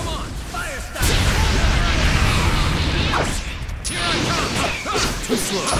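Fire bursts with a heavy roar.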